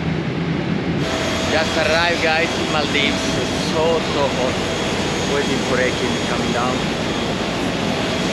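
A young man speaks close to the microphone.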